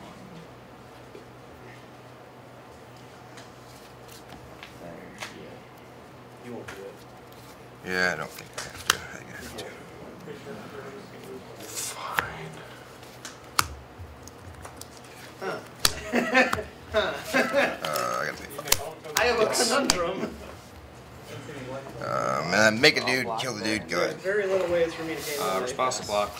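Playing cards are shuffled and slapped down on a soft mat.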